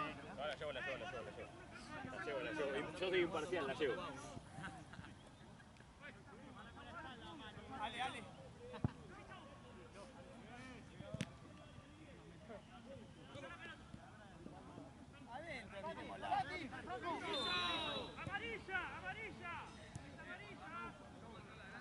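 Young men shout and call out across an outdoor field.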